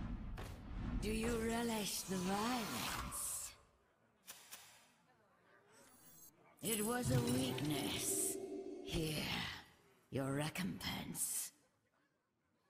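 A young woman talks with animation.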